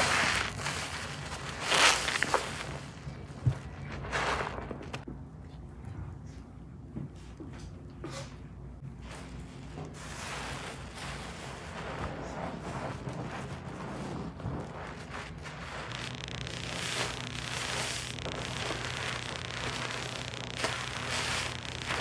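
Hands squeeze and knead a sponge in thick soap lather, which squelches and crackles wetly.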